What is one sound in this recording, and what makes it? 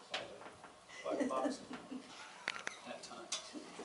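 A middle-aged woman laughs.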